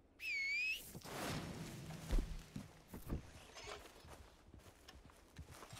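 Footsteps tread through grass.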